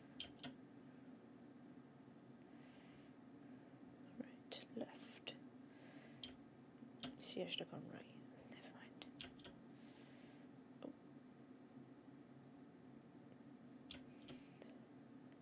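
A young woman talks quietly into a close microphone.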